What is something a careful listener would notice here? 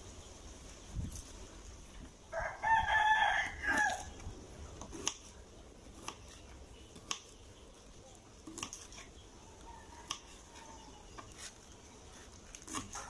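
A knife chops crisp vegetable stalks with soft taps on a cutting board.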